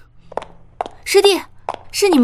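A young woman speaks nearby with animation.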